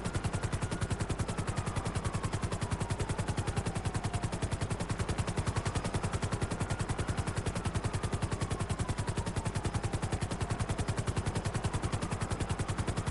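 A helicopter's rotor blades chop in flight.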